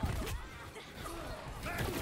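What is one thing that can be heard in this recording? A sword slashes through the air with a sharp swish.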